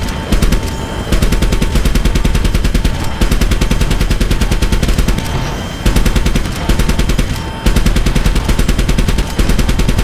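A helicopter's rotor thumps rapidly and loudly close by.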